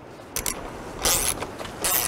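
A wrench clicks as it turns a bolt.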